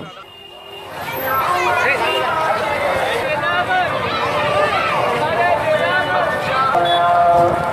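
A crowd of men chants loudly in the street.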